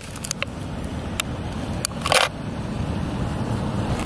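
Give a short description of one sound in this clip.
An aluminium can crunches under a shoe.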